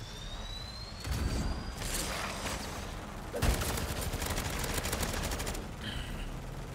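Gunfire bursts out in rapid shots.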